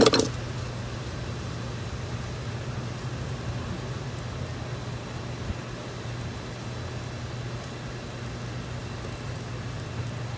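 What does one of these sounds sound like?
Hands rustle and brush against plant leaves.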